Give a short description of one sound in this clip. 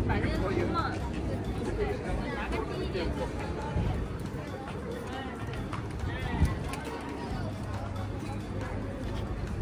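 A crowd of men and women chatter at a distance outdoors.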